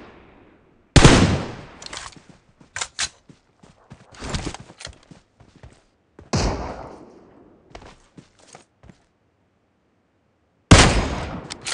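Rifle shots crack loudly, one at a time, with a ringing echo.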